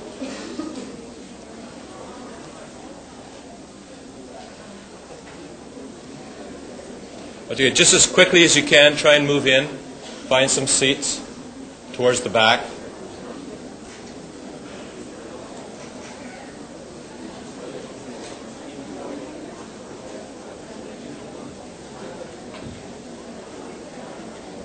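A large audience murmurs and chatters in an echoing hall.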